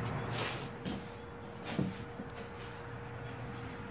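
A broom sweeps a wooden floor with soft scratching strokes.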